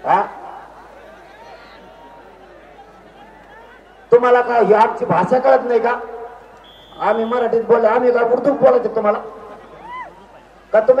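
A man speaks loudly and forcefully into a microphone over loudspeakers outdoors.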